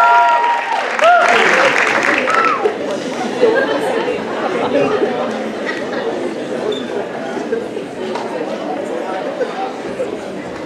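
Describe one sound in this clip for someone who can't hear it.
An audience cheers and applauds.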